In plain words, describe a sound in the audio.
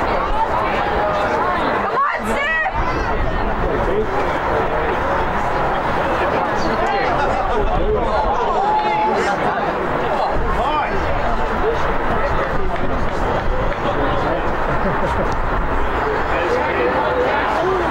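Spectators shout and call out across an open field.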